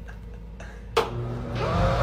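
A light switch clicks on.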